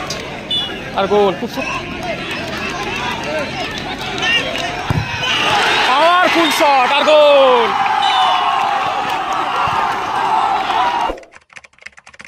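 A large outdoor crowd cheers and shouts loudly.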